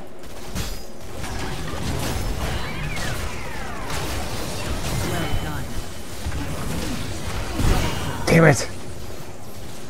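Game sound effects of spells and blows crackle and clash during a fight.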